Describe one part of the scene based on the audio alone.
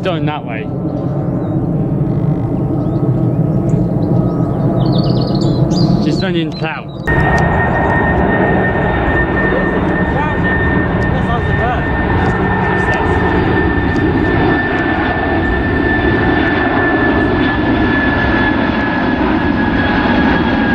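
A Boeing 747 jet airliner roars overhead on approach, its four engines rumbling and whining.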